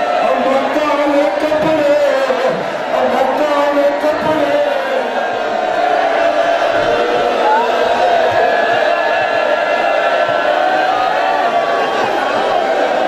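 A large crowd of men chants loudly together in an echoing hall.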